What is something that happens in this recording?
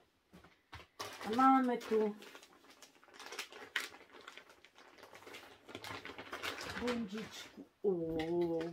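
Plastic wrapping crinkles and rustles as hands open a parcel.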